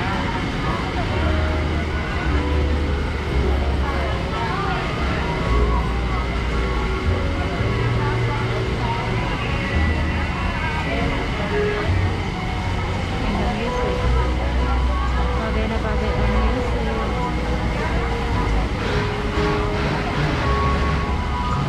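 A crowd of people chatter outdoors, in many voices.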